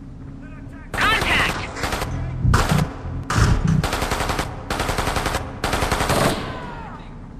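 A rifle fires in bursts.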